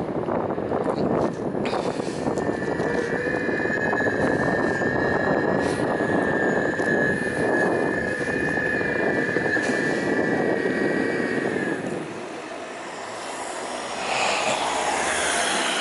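Tyres roll steadily over pavement.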